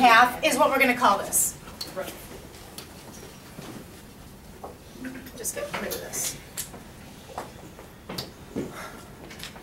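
A woman speaks calmly, explaining.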